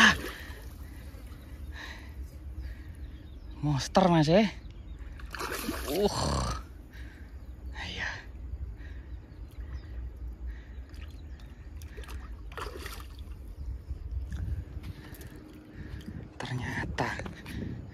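Water laps gently against concrete blocks.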